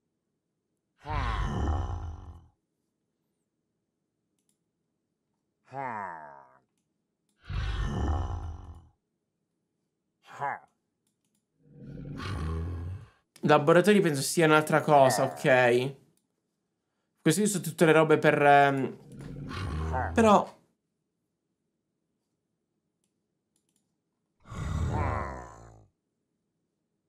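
A young man speaks into a microphone, close and in short bursts.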